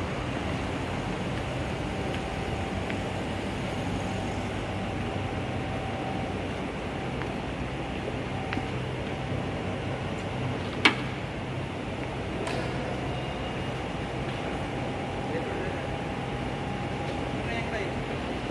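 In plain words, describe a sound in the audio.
Industrial machinery hums steadily throughout.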